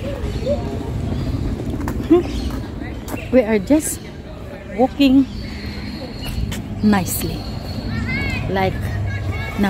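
A middle-aged woman speaks cheerfully close by.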